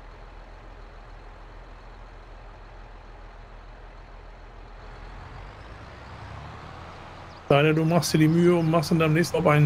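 A tractor engine hums at a steady low idle, then rises.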